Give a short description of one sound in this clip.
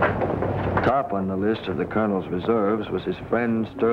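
A man narrates calmly.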